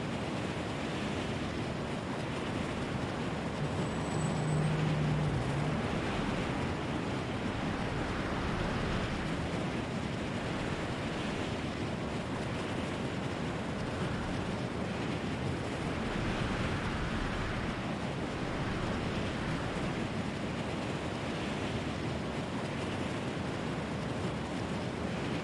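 Wind rushes loudly and steadily past at high speed.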